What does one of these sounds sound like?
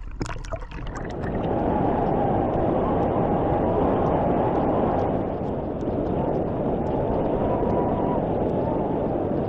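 Choppy water sloshes and splashes close by, outdoors in wind.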